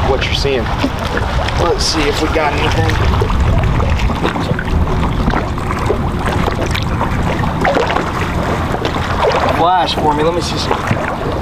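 A man talks casually close by, outdoors in wind.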